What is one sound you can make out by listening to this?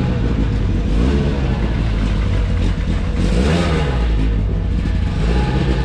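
A rally car engine revs and pulls away.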